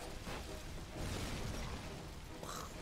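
Something explodes, and debris crashes down.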